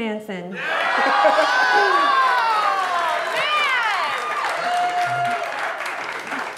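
A young woman laughs loudly and with delight.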